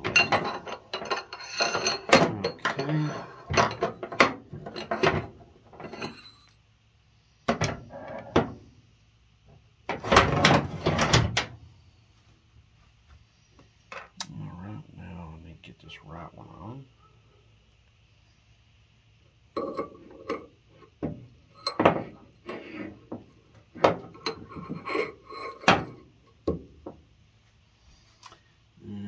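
Metal parts clink and scrape as they are handled on a metal bench.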